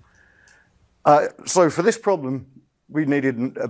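A man speaks calmly through a microphone, as if lecturing.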